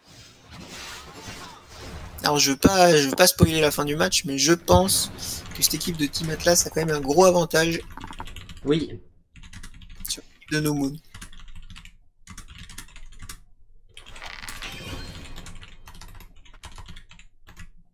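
Video game spell effects whoosh and crackle in short bursts.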